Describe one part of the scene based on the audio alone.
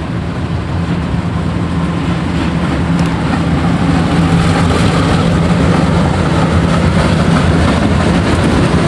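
A model train hums and rattles along its track, growing louder as it comes closer.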